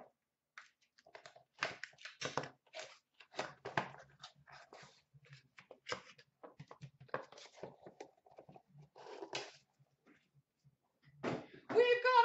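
Cardboard boxes rustle and tap as they are handled.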